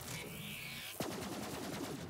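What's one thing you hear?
A gun fires in rapid shots.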